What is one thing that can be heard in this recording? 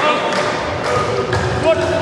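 A volleyball is smacked hard by a hand.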